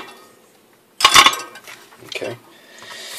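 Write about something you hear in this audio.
Small metal parts rattle in a box.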